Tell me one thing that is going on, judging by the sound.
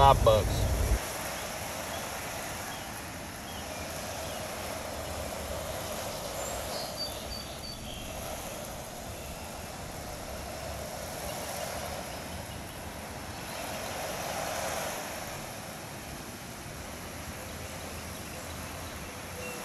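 A pressure washer sprays water against a wall with a steady hiss.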